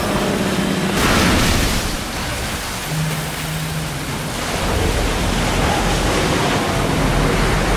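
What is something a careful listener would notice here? Water sprays and splashes steadily onto a hard floor.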